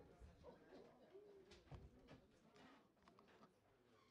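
Several men and women chatter nearby at once.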